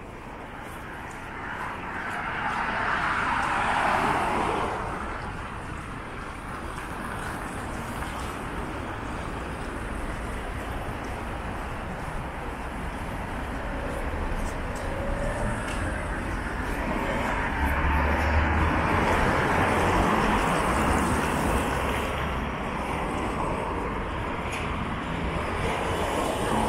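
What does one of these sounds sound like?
Cars drive past on a city street outdoors.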